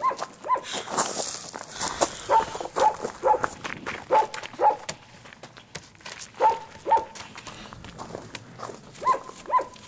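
Footsteps crunch on the ground nearby.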